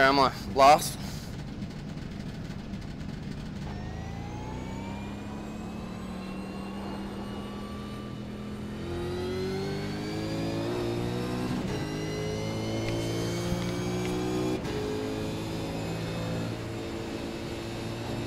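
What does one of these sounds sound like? A race car engine roars and revs higher as the car speeds up.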